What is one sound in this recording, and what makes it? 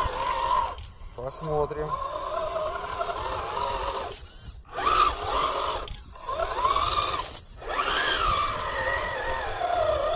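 Small tyres churn through wet mud.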